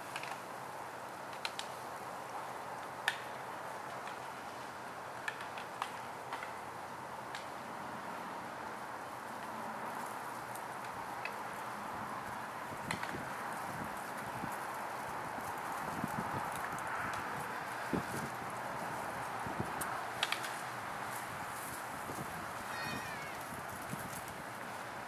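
An elk's antlers rustle and scrape through a pile of brush.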